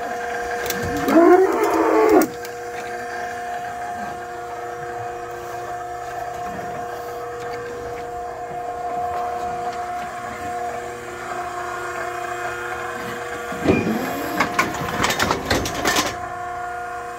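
A cow moos loudly nearby.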